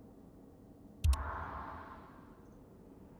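A game menu opens with a sharp click and a fading whoosh.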